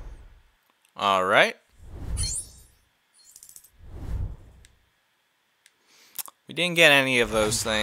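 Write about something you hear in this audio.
Coins jingle quickly as a score counts up.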